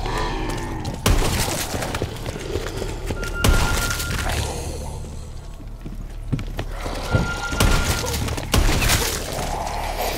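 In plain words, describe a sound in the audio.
Gunfire rings out in loud, sharp bursts.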